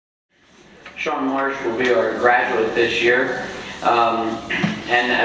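A man speaks calmly into a microphone, heard through loudspeakers in a reverberant hall.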